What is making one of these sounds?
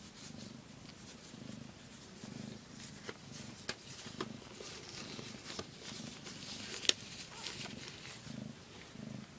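A cat purrs softly and steadily, close by.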